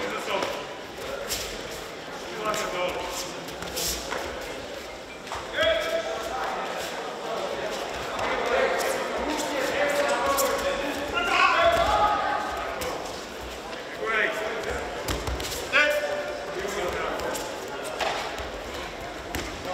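Bare feet shuffle and slap on a padded mat.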